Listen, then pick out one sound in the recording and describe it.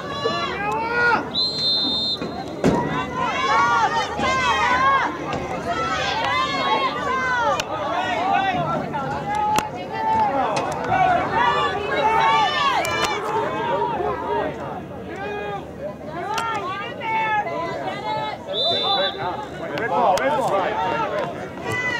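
A crowd of spectators and players shouts and cheers loudly outdoors.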